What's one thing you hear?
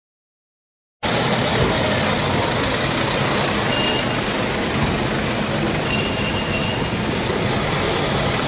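An ambulance engine hums as the vehicle drives slowly past.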